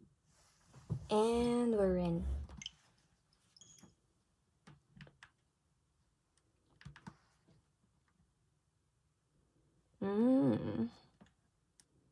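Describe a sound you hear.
A game console plays short electronic chimes.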